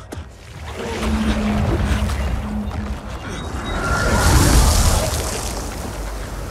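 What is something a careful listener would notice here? A heavy blast rumbles deeply.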